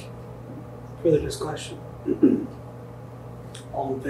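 A man speaks briefly through a microphone, in short bursts.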